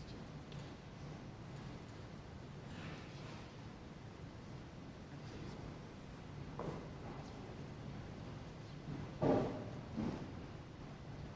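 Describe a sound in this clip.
Cloth robes rustle softly as men embrace one another.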